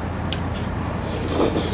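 A man slurps saucy rice cakes close to the microphone.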